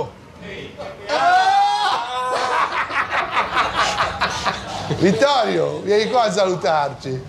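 An older man speaks cheerfully and loudly.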